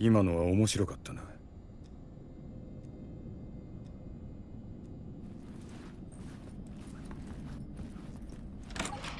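Footsteps fall slowly on a soft floor.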